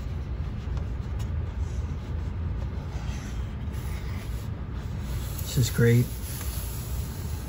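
A book page is turned with a papery rustle.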